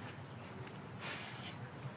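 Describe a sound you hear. A young man speaks calmly nearby.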